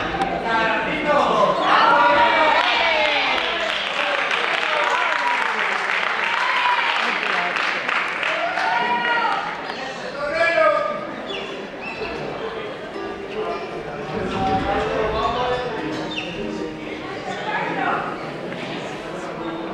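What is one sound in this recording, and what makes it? Several actors speak and call out loudly in a large echoing hall.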